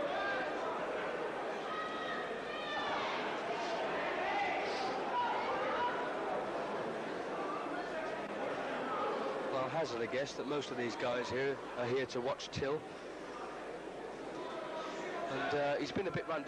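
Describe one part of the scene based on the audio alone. A large crowd murmurs and calls out in an echoing hall.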